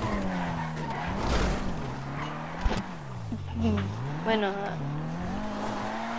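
Car tyres screech as the car skids around a corner.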